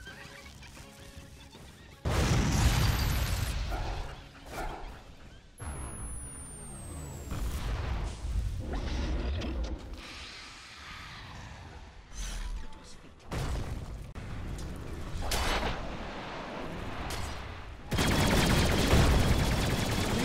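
Game spells crackle and blast during a fight.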